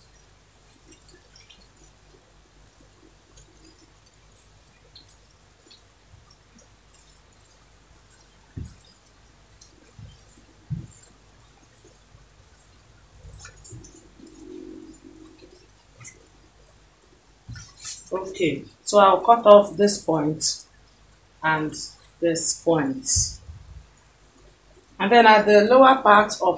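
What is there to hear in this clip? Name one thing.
Cloth rustles softly as hands smooth and fold it.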